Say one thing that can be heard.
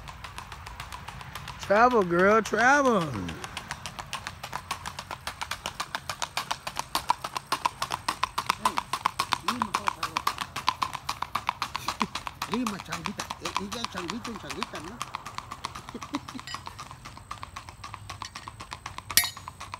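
A horse's hooves clop rapidly on a paved road, fading as the horse moves away.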